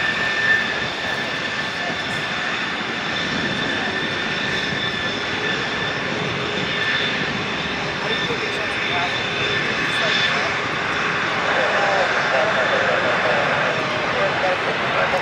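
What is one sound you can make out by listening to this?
A jet airliner's engines whine and roar steadily as it taxis nearby.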